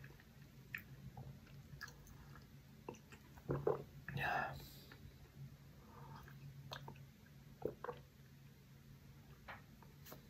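A man slurps a drink from a mug.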